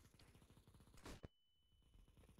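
A grenade bursts with a loud bang.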